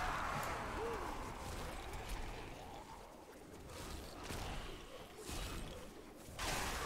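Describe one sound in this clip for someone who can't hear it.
Magic spells crackle and burst in a video game battle.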